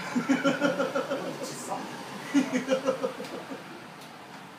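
A young man talks and laughs cheerfully nearby.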